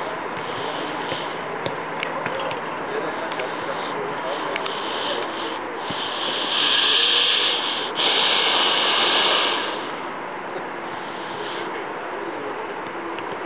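Wind blows steadily outdoors, gusting louder for a few seconds.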